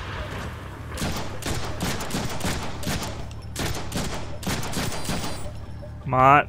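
Pistol shots fire in rapid bursts.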